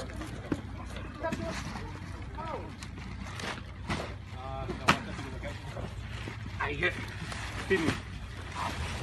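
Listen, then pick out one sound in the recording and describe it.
Boxes thud and scrape as men grab them.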